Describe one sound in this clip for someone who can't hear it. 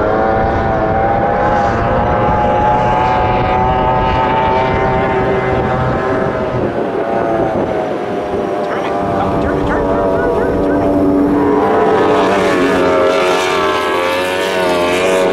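Water sprays and hisses behind a speeding powerboat.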